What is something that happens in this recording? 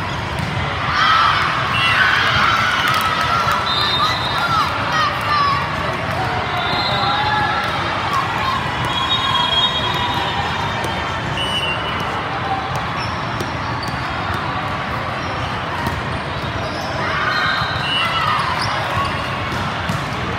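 Young women shout and cheer on the court.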